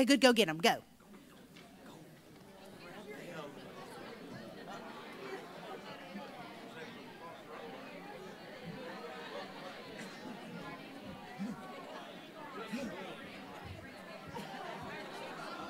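A crowd of men and women chat and greet each other all at once in a large room.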